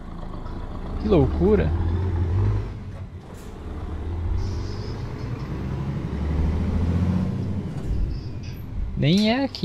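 A truck engine rumbles low and rises and falls.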